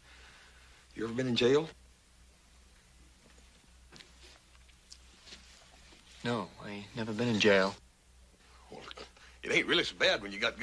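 A man speaks with a cheerful, amused voice.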